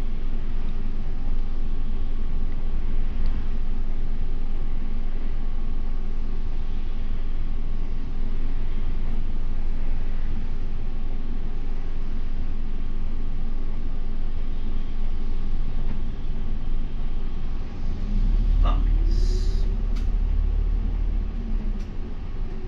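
A bus engine rumbles steadily, growing louder near the end.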